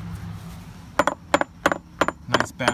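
A hammer taps sharply on metal several times.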